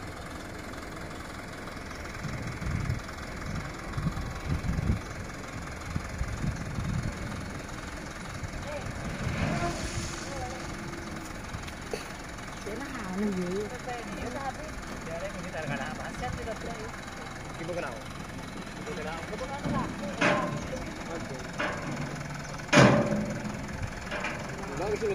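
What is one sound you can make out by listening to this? A truck engine runs steadily nearby.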